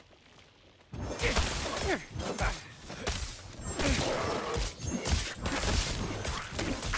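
Blades slash and strike monsters in rapid bursts of combat.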